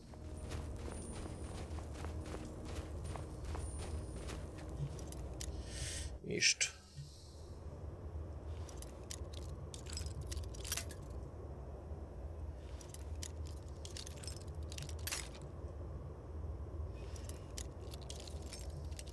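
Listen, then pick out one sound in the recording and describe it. A man talks calmly through a microphone.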